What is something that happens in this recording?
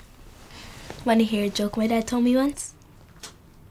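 A young girl speaks briefly nearby in a lively voice.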